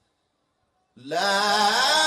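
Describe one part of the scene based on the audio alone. A man recites in a loud, drawn-out chant through a microphone and loudspeakers.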